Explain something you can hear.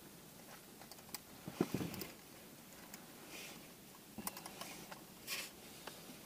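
A metal container's lid clicks and rattles as it is twisted by hand.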